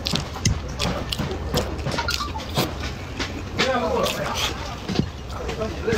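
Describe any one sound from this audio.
Chopsticks click against a ceramic bowl.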